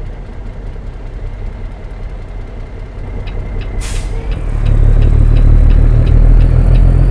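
A truck engine idles with a low rumble, growing louder.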